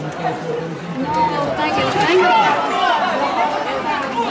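A crowd cheers and shouts excitedly.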